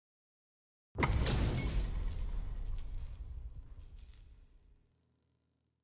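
Fireworks crackle and pop in a game.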